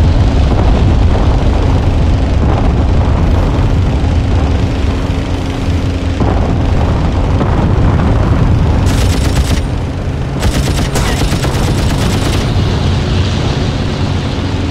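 A propeller engine drones steadily and loudly.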